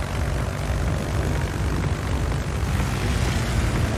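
Anti-aircraft shells burst in loud booms.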